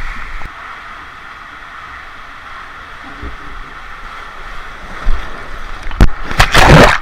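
Water rushes and echoes inside an enclosed tube slide.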